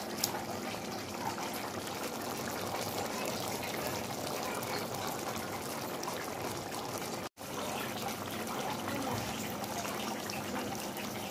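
A pot of stew bubbles and sizzles as it simmers.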